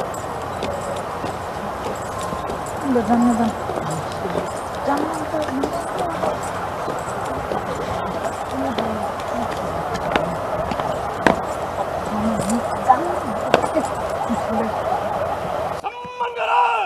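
A crowd of people murmurs in the background outdoors.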